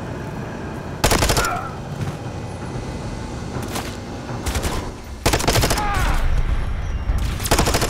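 Gunfire rattles in short rapid bursts.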